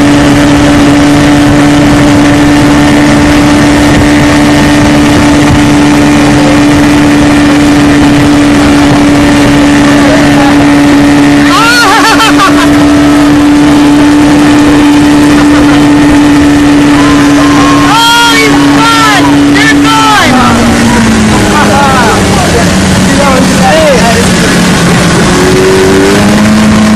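A boat's outboard motor drones steadily, then drops lower as it slows.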